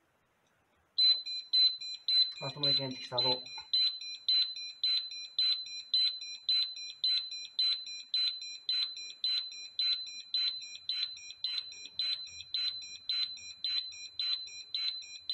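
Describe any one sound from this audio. An alarm bell rings loudly in rapid repeated bursts.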